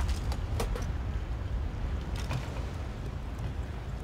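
Footsteps clank on a metal ladder.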